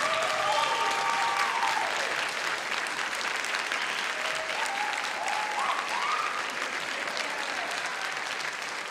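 A crowd applauds steadily in a large echoing hall.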